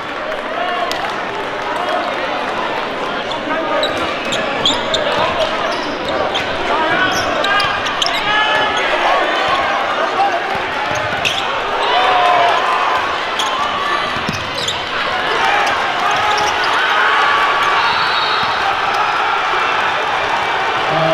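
A crowd in a large echoing gym cheers and chatters.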